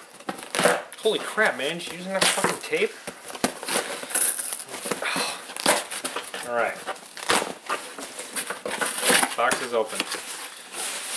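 A young man talks with amusement, close by.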